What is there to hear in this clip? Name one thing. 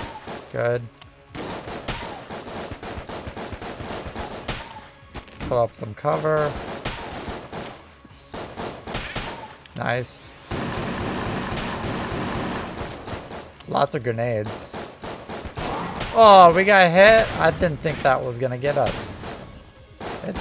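Guns fire in quick bursts of shots.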